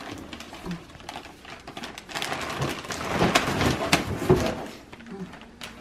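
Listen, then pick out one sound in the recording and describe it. Wrapping paper crinkles and rustles under small hands.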